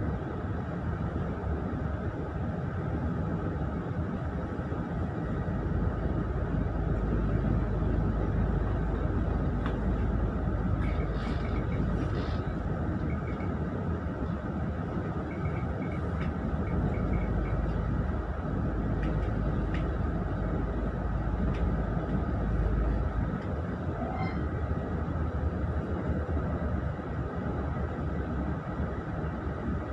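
A vehicle rumbles steadily, heard from inside as it travels.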